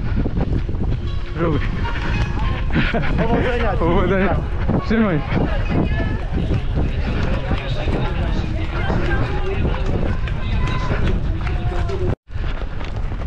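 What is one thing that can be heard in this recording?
A crowd of men and women cheers and shouts nearby.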